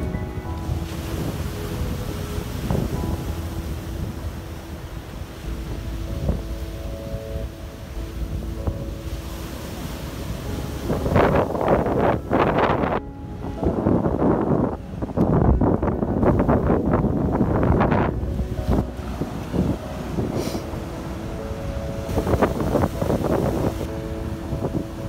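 Waves crash and surge against rocks close by.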